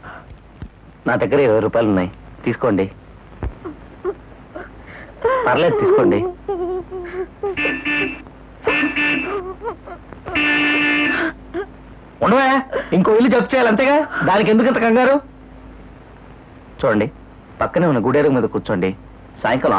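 A middle-aged woman speaks emotionally, close by.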